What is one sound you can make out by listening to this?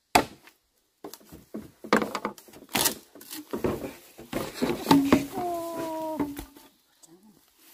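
Bamboo poles scrape and knock as they are dragged through dry leaves.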